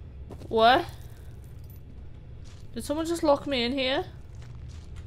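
A young woman speaks with animation into a microphone, close by.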